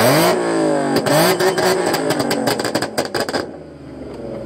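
A car exhaust pops and crackles rapidly.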